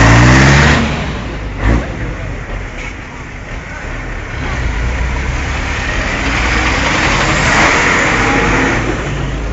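Large truck engines rumble loudly close by.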